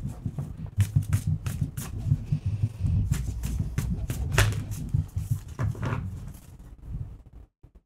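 Playing cards riffle and tap as hands shuffle a deck.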